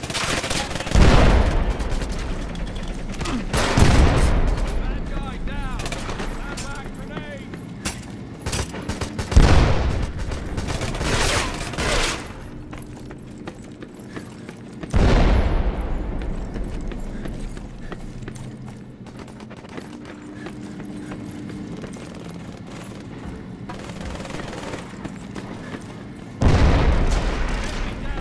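Gunshots fire in loud bursts, ringing out in an echoing space.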